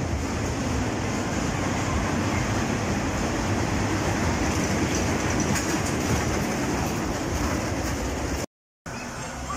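A small roller coaster train rumbles and rattles along its track.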